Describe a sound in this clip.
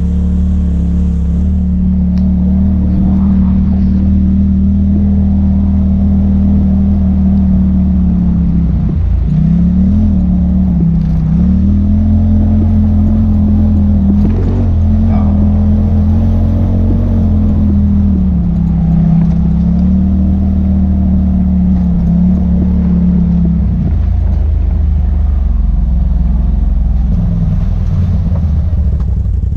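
An engine hums steadily and rises and falls as a vehicle drives over a dirt track.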